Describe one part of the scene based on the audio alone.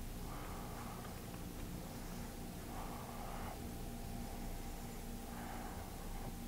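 A cloth rubs softly against a canvas.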